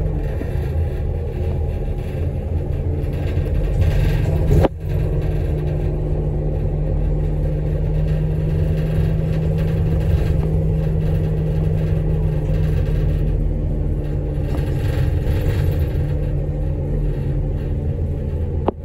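A vehicle's engine hums steadily from inside as it drives along a road.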